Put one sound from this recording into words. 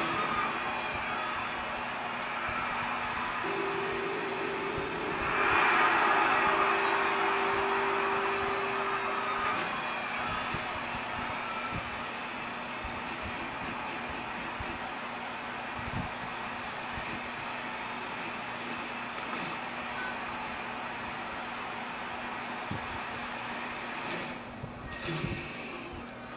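Music plays from a television loudspeaker.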